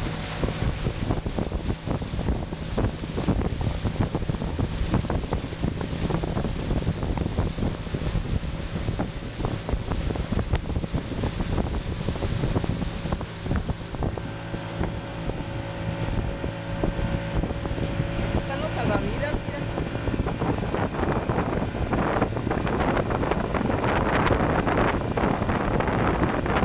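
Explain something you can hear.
Water splashes and churns against a moving boat.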